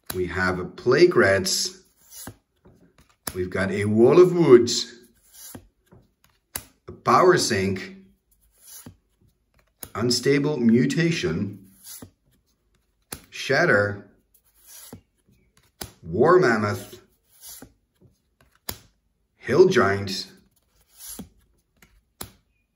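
Playing cards slide and flick softly against each other.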